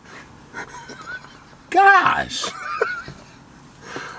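A man laughs loudly up close.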